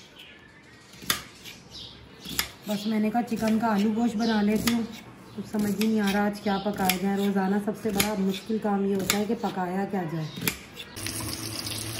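A knife chops through onion.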